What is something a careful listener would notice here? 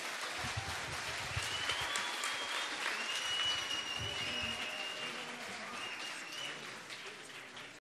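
An audience claps in a large hall.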